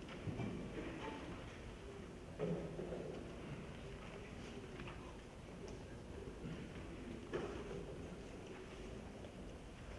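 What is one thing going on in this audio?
An orchestra plays in a large echoing hall.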